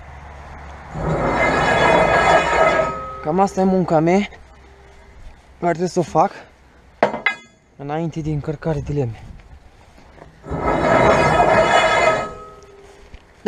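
Metal poles scrape and grind along a truck bed.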